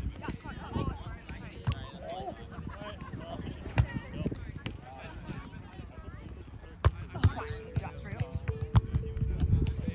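A volleyball is bumped and set with dull thuds during a rally.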